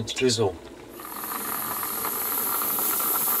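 A kettle hisses and whistles steadily as it boils.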